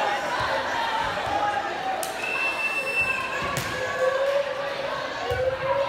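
A large crowd of young people chatters and calls out in an echoing hall.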